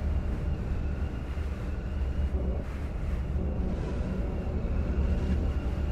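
A hover bike engine hums steadily.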